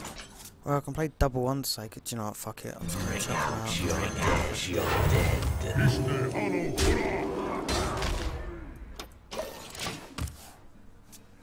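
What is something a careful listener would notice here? Magical whooshes, chimes and impact effects play loudly.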